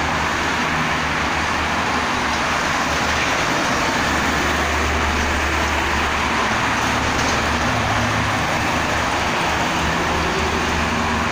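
Heavy trucks rumble by with a deep engine drone.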